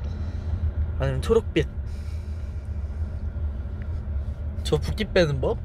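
A young man speaks casually, close to a phone microphone.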